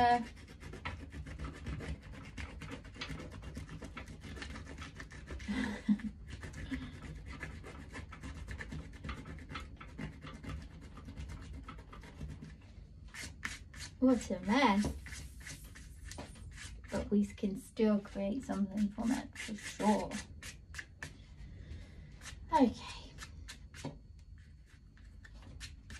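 A pastel stick scratches softly on paper.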